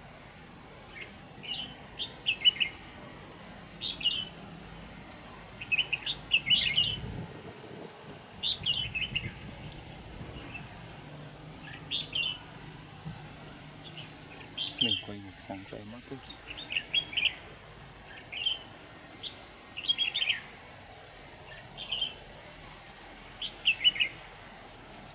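A small bird chirps in short bright bursts outdoors.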